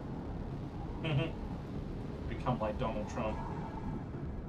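A middle-aged man speaks briefly and calmly into a microphone, close by.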